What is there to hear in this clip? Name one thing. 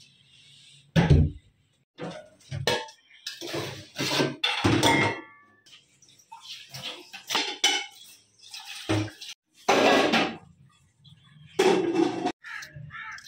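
Metal pots clatter and clank.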